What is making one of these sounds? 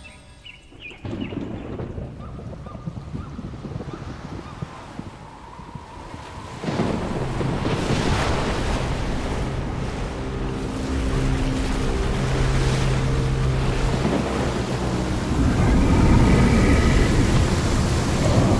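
Stormy waves surge and crash.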